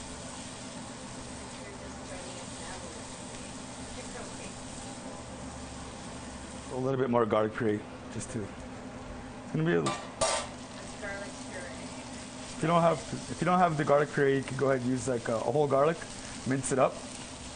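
A spatula scrapes and stirs across a metal pan.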